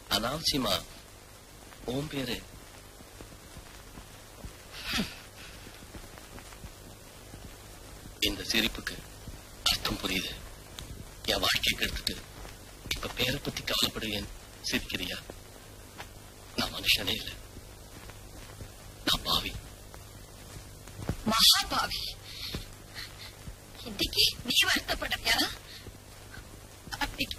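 A man speaks in short, tense bursts with pauses between them.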